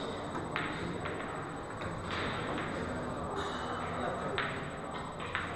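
Pool balls clack against each other and the cushions.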